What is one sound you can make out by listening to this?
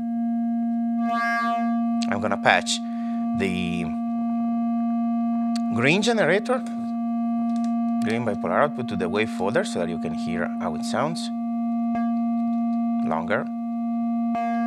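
A modular synthesizer makes bursts of warbling, sweeping electronic tones.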